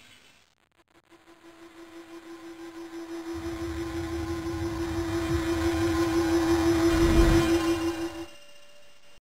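A magic spell hums and shimmers, swelling louder in quick pulses.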